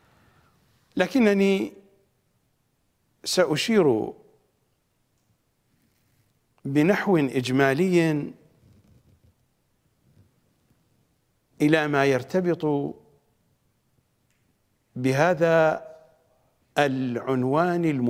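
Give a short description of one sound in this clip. A middle-aged man speaks with animation into a close microphone, in short phrases with pauses.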